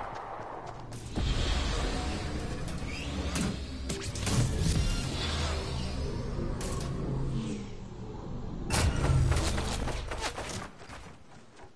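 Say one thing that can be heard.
A hoverboard hums and whirs as it glides along.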